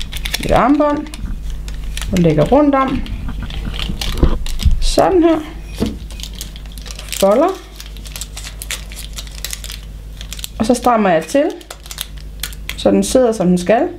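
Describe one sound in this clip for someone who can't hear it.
A plastic sheet crinkles as hands bend and roll it.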